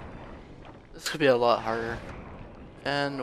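A magical blast crackles and whooshes.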